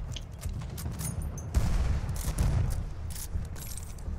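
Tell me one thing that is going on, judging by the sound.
A rifle bolt clicks and clatters during reloading.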